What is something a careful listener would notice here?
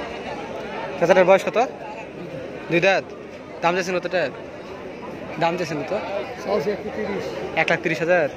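A man talks loudly in short bursts close by.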